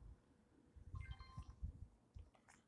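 An electronic device gives a short beep.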